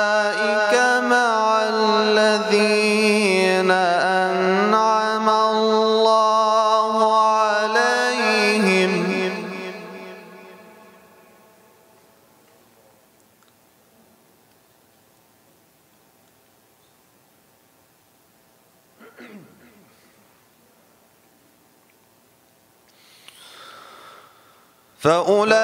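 A young man chants a sustained lament through a microphone, echoing in a large hall.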